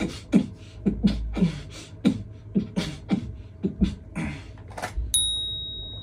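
A young man beatboxes close by.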